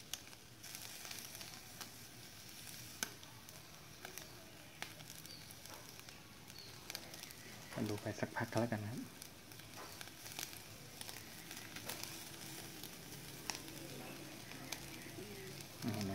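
Burning charcoal crackles and pops now and then.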